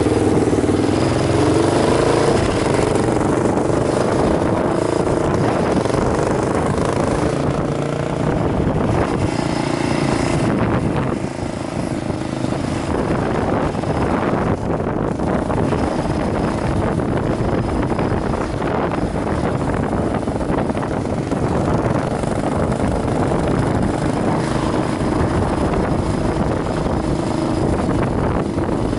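A motorcycle engine hums steadily up close while riding.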